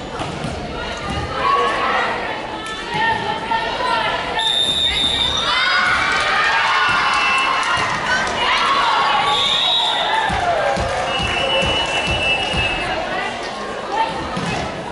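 Young women call out and chatter in a large echoing hall.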